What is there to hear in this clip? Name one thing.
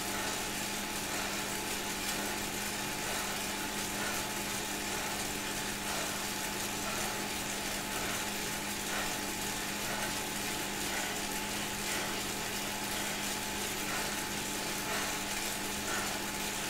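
An indoor bike trainer whirs steadily.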